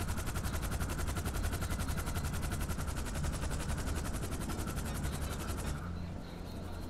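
A helicopter's rotor thumps rapidly and steadily close by.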